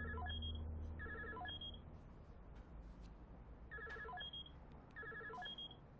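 A short electronic melody beeps repeatedly from a phone.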